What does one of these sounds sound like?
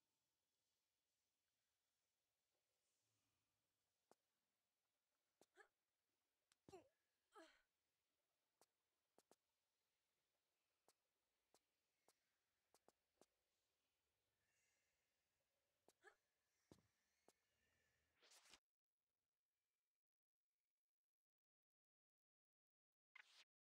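A man speaks quietly into a microphone.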